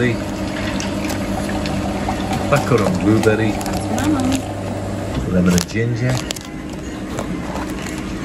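Paper tea sachets rustle and crinkle as a hand picks through them.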